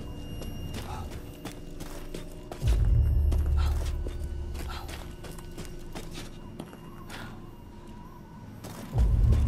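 Footsteps crunch on roof tiles.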